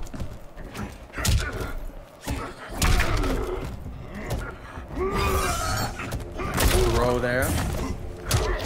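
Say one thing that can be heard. Heavy punches and kicks land with sharp thuds and cracks.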